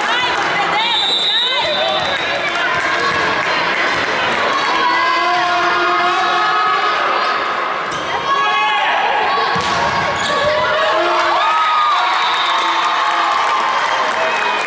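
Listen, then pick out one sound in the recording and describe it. Young women players shout to each other.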